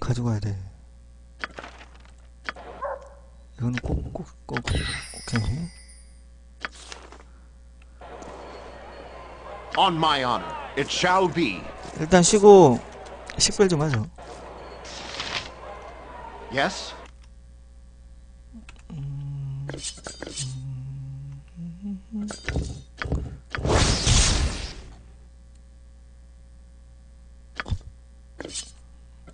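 Short menu clicks and chimes sound now and then.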